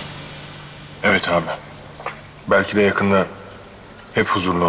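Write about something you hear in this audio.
A woman speaks tensely nearby.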